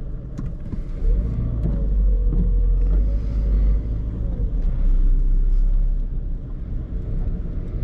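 A car engine revs and rumbles louder as the car pulls away.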